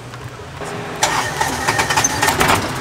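A key clicks as it turns in an ignition.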